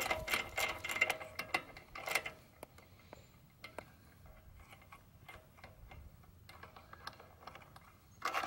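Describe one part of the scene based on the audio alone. Small parts of an engine click and rattle under a hand's touch.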